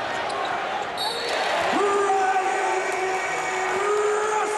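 A large crowd cheers in an echoing arena.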